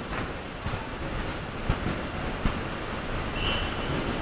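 Footsteps march across a hard floor.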